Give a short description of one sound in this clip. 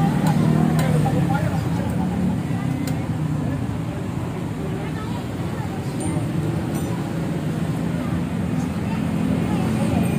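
A wrench clicks against a motorcycle's metal parts.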